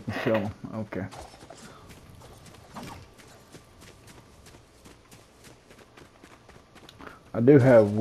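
Quick footsteps patter on soft ground.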